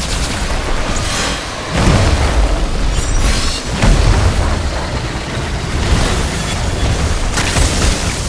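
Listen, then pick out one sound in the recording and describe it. Electric bolts crackle and zap.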